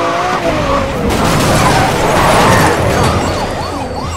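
A car crashes hard into another car with a crunch of metal.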